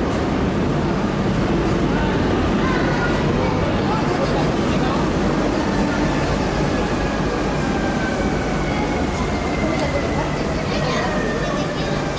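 Train brakes squeal as the train slows.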